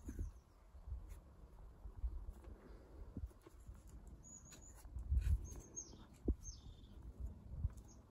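A climber's hands and shoes scuff and tap against rock.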